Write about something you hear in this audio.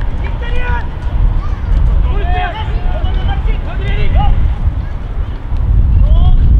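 Football players shout to each other across an open field in the distance.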